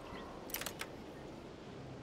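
A lock clicks as it is picked and turned.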